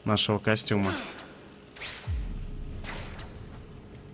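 A rope-like line whips and whooshes through the air.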